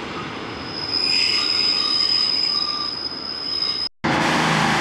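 Train brakes squeal with a high, steady whine.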